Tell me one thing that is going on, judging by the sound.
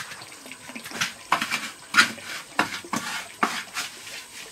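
Wet concrete splashes and slaps.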